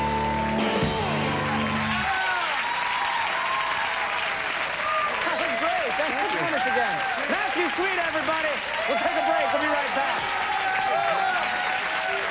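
A large audience claps and cheers loudly.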